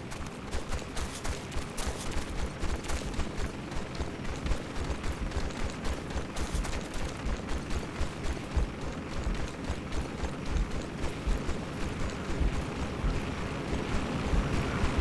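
Footsteps thud quickly on grass and dirt as a person runs.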